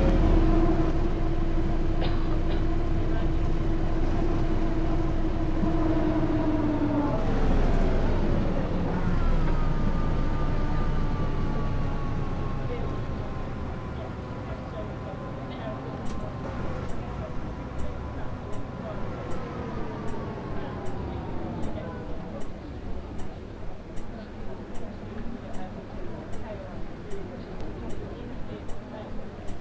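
A bus engine hums steadily, dropping in pitch as the bus slows.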